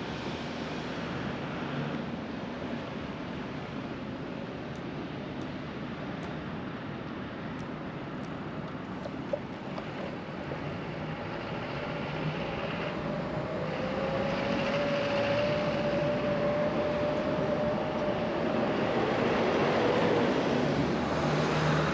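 Traffic hums steadily along a wide road outdoors.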